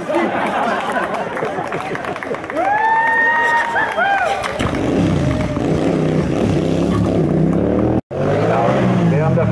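A motorcycle engine revs loudly up and down close by.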